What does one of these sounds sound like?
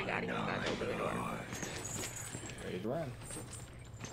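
A young woman talks and laughs with animation, close to a microphone.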